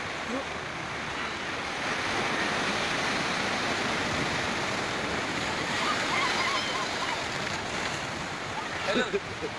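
Waves crash and surge against rocks nearby.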